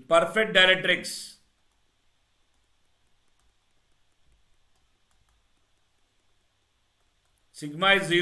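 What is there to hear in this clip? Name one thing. A man speaks calmly into a close microphone, pausing between phrases.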